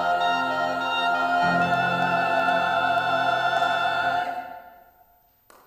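A choir of women sings a sustained chord in an echoing hall.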